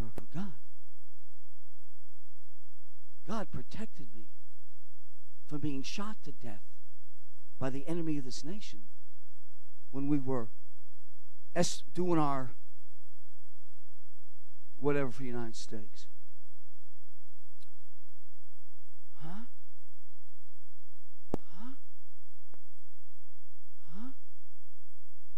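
An elderly man speaks into a microphone in short phrases with long pauses.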